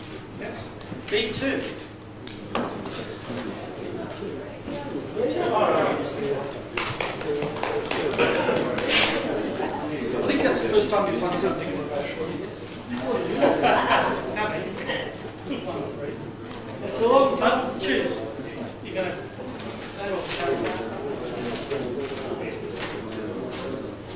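A man talks at a distance in a room with some echo.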